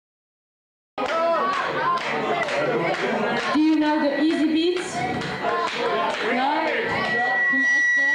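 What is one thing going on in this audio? A rock band plays loudly and live, with drums and electric guitar.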